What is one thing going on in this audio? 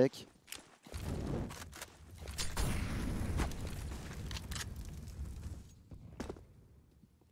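Flames roar and whoosh.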